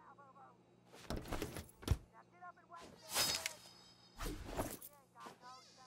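Cupboard doors bang open and shut.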